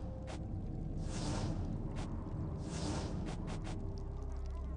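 Magic spells whoosh and shimmer in bursts.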